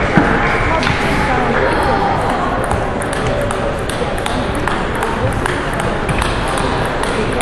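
A crowd murmurs in the background.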